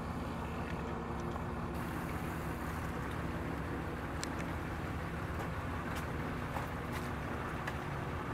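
Water laps gently against a rocky shore.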